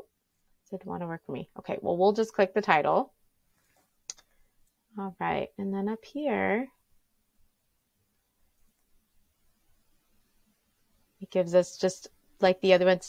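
A young woman talks calmly and closely into a microphone, in short bursts with pauses.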